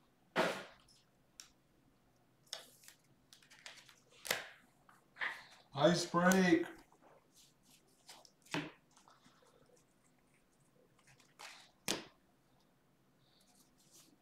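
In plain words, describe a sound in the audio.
Trading cards rustle and slap as hands shuffle through a stack.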